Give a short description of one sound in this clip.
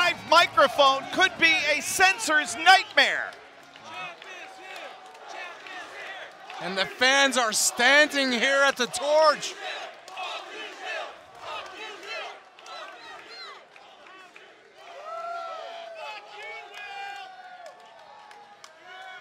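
A crowd shouts and chants.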